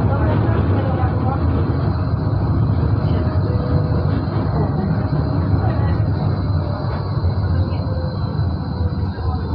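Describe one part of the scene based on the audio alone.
A tram rumbles steadily along its tracks, heard from inside.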